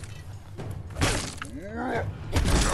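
A large creature growls.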